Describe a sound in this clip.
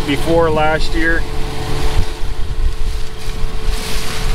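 A farm machine hums steadily nearby.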